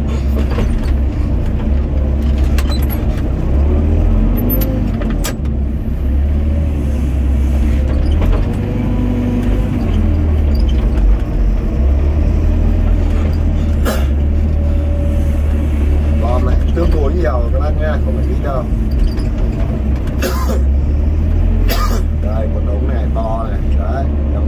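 A diesel engine rumbles loudly and steadily close by.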